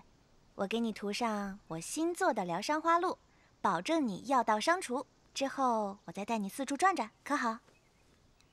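A young woman speaks calmly and clearly.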